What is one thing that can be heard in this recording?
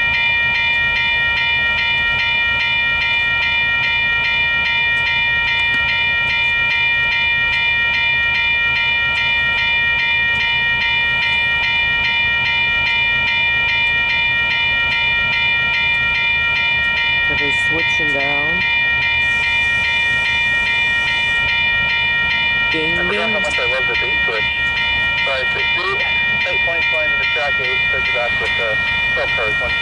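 A level crossing bell rings steadily and quickly.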